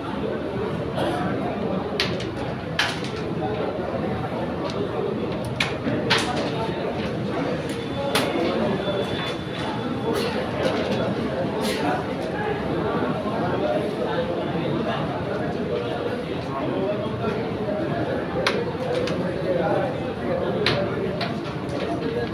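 Carrom pieces click sharply against each other on a wooden board.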